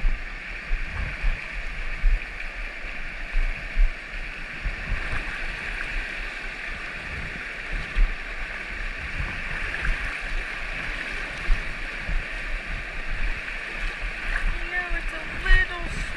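A shallow river rushes steadily over rocks close by.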